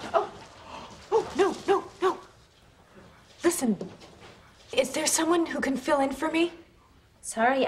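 A woman speaks in reply.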